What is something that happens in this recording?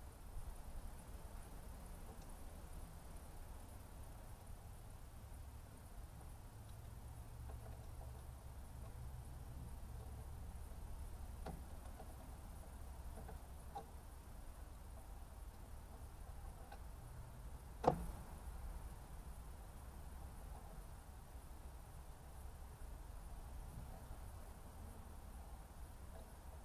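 Water trickles from a hose.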